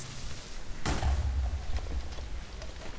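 A blast booms and rumbles.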